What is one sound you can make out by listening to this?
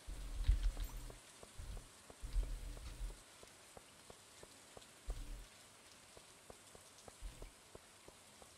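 Footsteps tap lightly on stone.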